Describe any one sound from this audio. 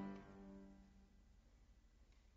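A piano chord rings out in a large hall and slowly fades.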